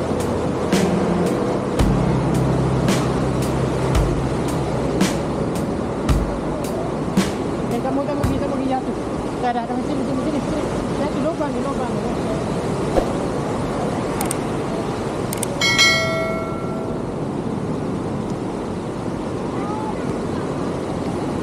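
Waves break and wash up on a beach.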